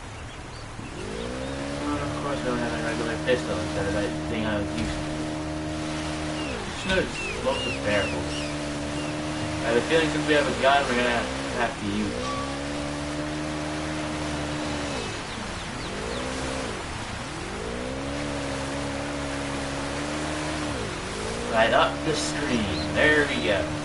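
A jet ski engine drones and revs up and down.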